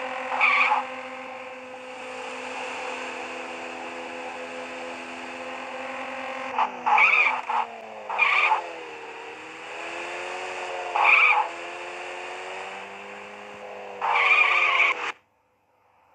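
A car engine drones steadily, its pitch rising and falling.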